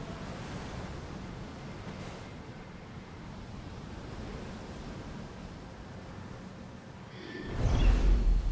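Waves splash.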